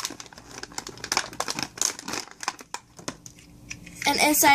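Stiff plastic packaging crinkles and crackles in someone's hands.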